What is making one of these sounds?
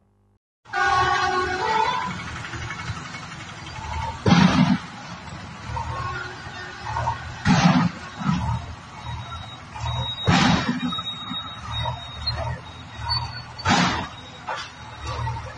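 A heavy diesel engine rumbles nearby.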